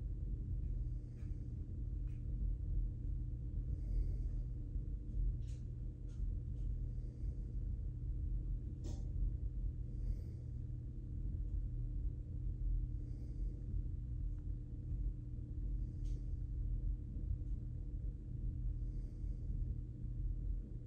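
A person breathes slowly and softly close by.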